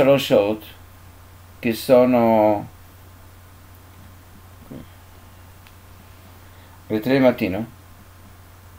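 An elderly man speaks calmly and close by, in short bursts with long pauses.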